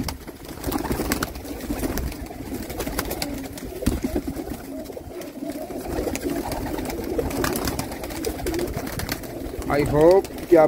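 Pigeons coo throughout, close by.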